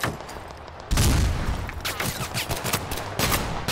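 A shell explodes nearby with a deep, heavy boom.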